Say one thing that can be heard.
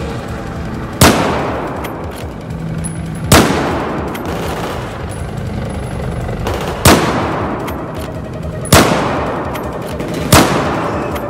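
A rifle fires loud single shots that echo through a large hall.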